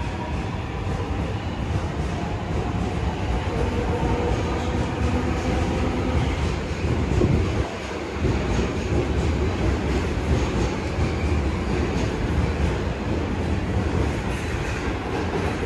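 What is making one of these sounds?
A train rumbles and rattles past and moves away.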